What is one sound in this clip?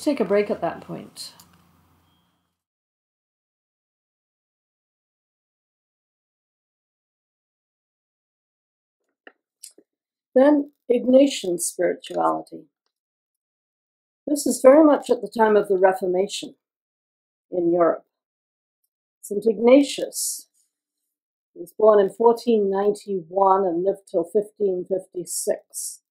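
An elderly woman reads aloud calmly.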